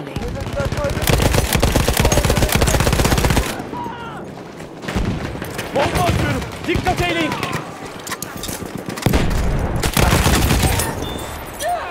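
A machine gun fires in rapid, loud bursts.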